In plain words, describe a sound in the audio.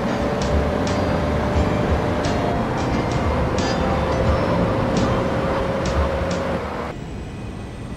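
A car engine hums as a car drives along a road.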